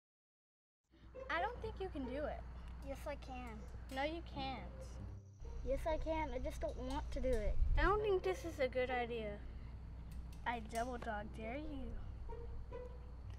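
A boy talks with feeling, close by.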